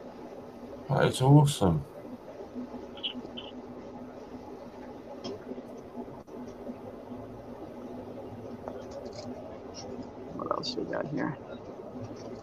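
A middle-aged man speaks briefly over an online call.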